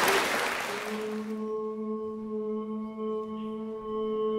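An accordion plays steady held notes.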